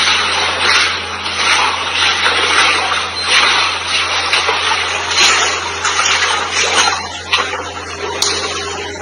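Floodwater rushes and splashes loudly.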